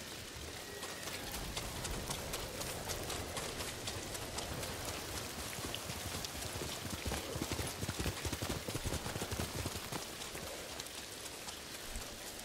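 Quick footsteps run through tall grass.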